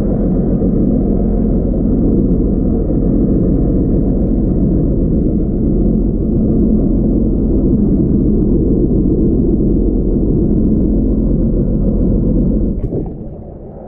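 Water rushes and rumbles in a low, muffled way, heard from underwater.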